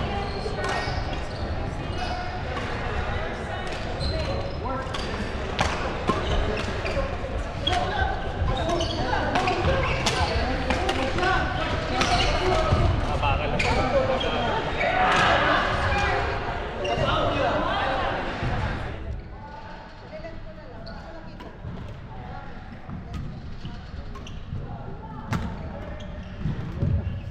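Sports shoes squeak and patter on a court floor.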